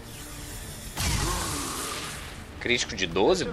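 An energy weapon fires with a loud rushing blast.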